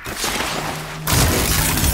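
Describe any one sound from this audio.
A mechanical creature lets out a loud metallic roar nearby.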